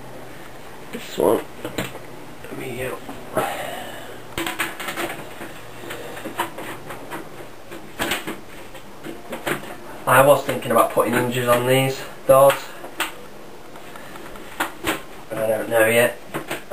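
A man talks nearby in a relaxed voice.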